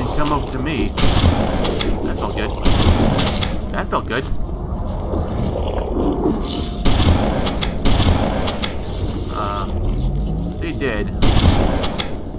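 A shotgun fires loud, booming blasts again and again.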